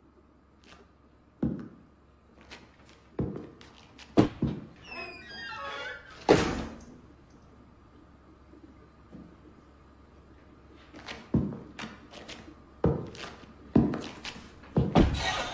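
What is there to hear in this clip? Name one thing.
Boot heels click on a hard tiled floor, echoing.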